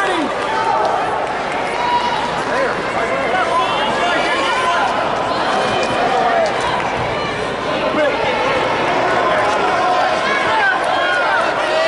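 Shoes squeak sharply on a wrestling mat.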